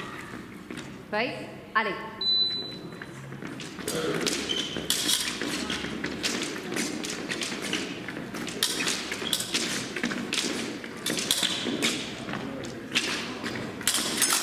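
Fencers' feet shuffle and stamp on a metal piste.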